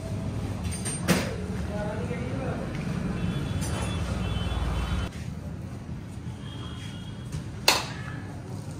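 Metal clinks sharply.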